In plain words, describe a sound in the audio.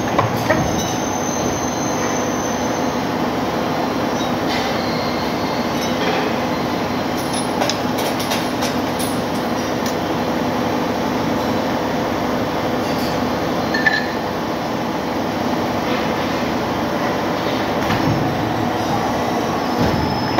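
A hydraulic press machine hums steadily.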